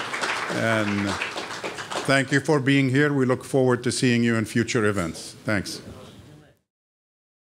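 An audience murmurs and chatters.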